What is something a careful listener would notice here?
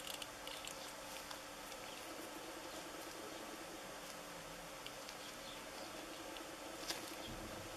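Gloved hands click and snap plastic parts together.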